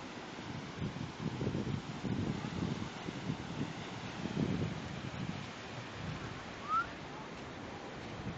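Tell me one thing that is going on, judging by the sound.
Wind gusts buffet the microphone outdoors.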